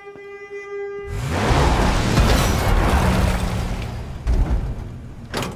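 A van crashes down with a loud rumbling roar.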